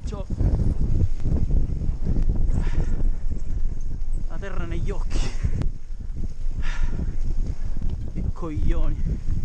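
Bicycle tyres rumble and crunch over a bumpy dirt trail.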